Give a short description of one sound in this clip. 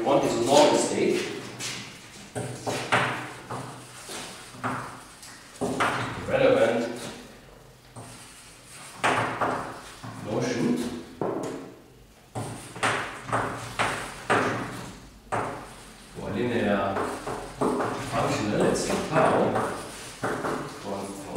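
A man lectures calmly through a microphone in a room with some echo.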